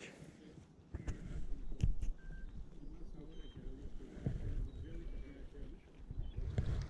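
Wind rumbles over the microphone outdoors.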